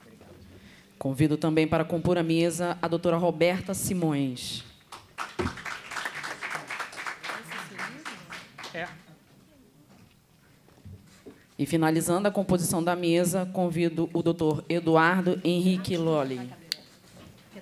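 A woman speaks calmly into a microphone, echoing through a hall's loudspeakers.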